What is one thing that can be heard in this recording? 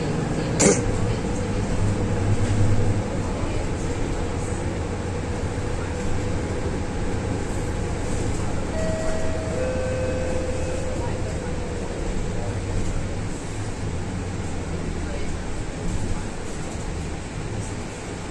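A bus rattles and shakes as it drives along.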